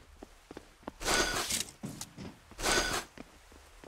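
Footsteps clang on a sheet metal roof.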